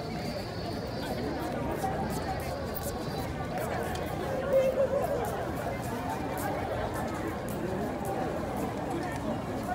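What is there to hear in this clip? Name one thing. Footsteps pass close by on hard ground.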